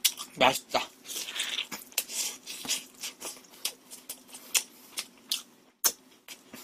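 A young man chews and slurps food loudly, close to a microphone.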